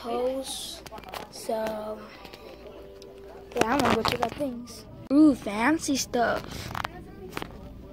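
A young boy talks with animation close to the microphone.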